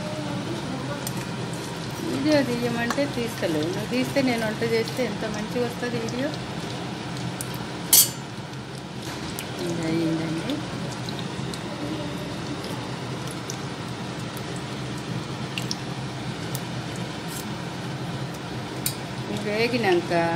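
Seeds sizzle in hot oil in a wok.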